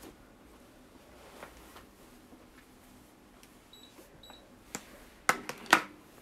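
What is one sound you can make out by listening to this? Clothing rustles and bumps close by.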